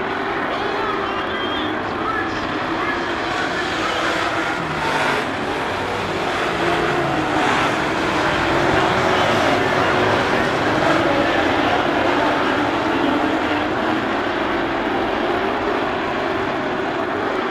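Race car engines roar loudly as cars speed around a dirt track.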